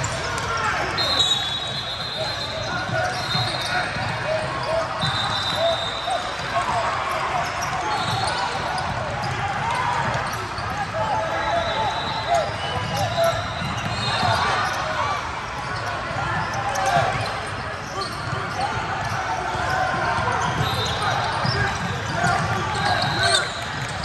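Sneakers squeak sharply on a hardwood court, again and again.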